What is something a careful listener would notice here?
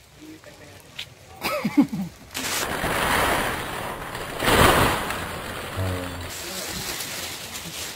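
A plastic sheet crinkles and rustles.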